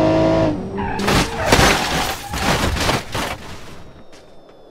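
A car smashes into a rock wall with heavy crunching impacts.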